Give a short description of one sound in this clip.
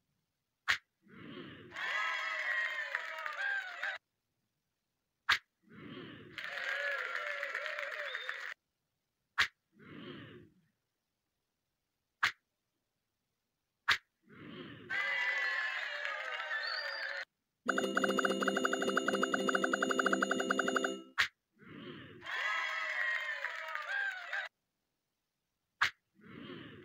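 A hard slap smacks against a face.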